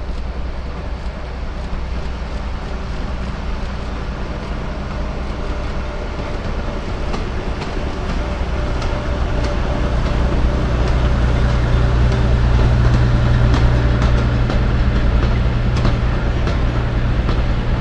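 A small train rumbles along its track, growing louder as it approaches.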